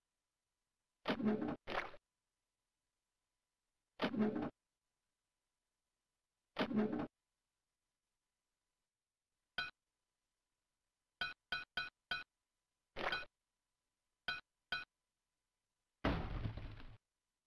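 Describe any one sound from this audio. Short squelching thuds sound now and then.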